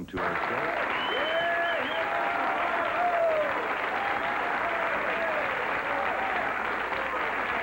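A big band plays music.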